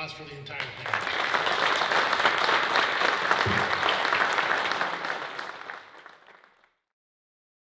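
An audience applauds loudly, then the applause fades.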